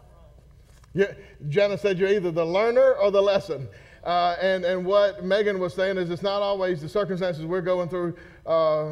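A man speaks loudly and with animation into a microphone in an echoing hall.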